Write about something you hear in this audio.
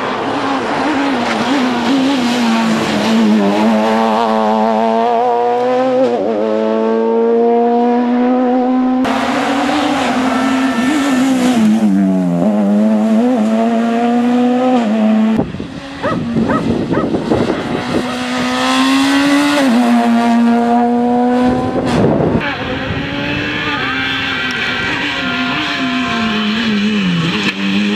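A rally car engine roars and revs up and down close by as it speeds past.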